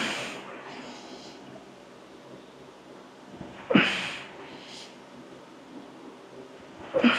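A man breathes out hard with effort.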